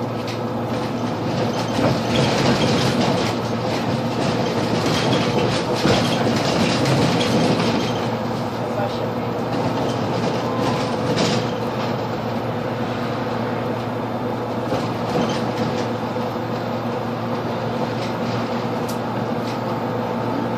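A bus engine hums steadily from inside the cabin.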